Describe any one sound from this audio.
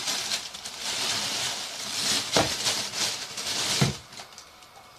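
A plastic bag rustles and crinkles loudly close by.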